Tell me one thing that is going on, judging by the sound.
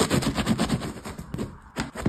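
Crusty bread crackles as it is cut.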